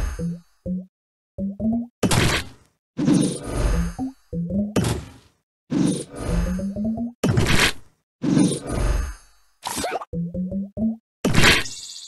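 Short chiming notes rise in pitch as game pieces match.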